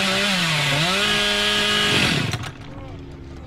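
A chainsaw engine revs loudly, its pitch dipping and rising, then cuts out.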